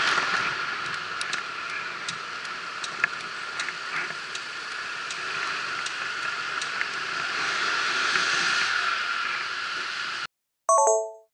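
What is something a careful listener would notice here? Wind rushes past a bicycle riding along a street.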